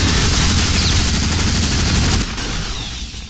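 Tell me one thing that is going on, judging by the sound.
A heavy gun fires a rapid burst of shots.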